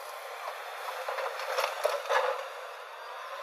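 Dirt and rocks thud into a truck's metal bed.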